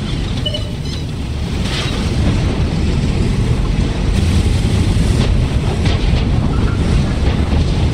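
Tank tracks clank and grind as a tank moves.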